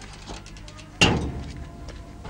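A heavy door bangs shut.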